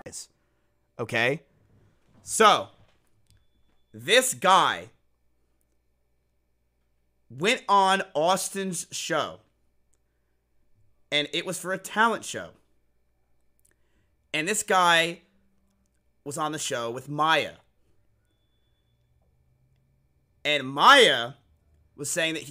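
A young man talks with animation into a close microphone, in short bursts with pauses.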